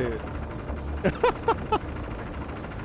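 A man laughs loudly nearby.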